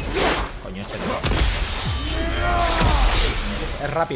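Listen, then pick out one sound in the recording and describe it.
A blade whooshes through the air.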